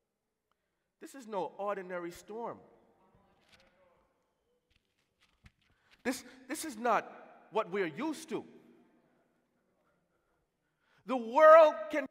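A man sings passionately into a microphone over loudspeakers in a large echoing hall.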